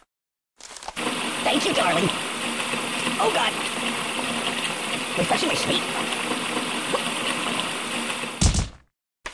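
A water gun sprays a hissing stream of water.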